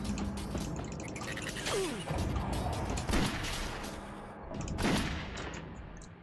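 A pistol fires a few shots.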